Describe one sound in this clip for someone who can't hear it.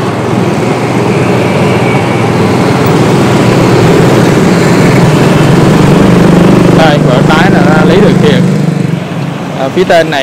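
Motorbike engines hum and drone as traffic passes nearby.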